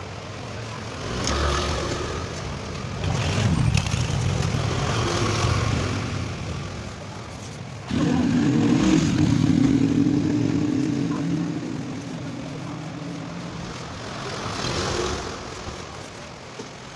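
Motorbikes pass by on a street nearby.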